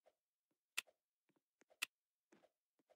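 Short game menu clicks sound.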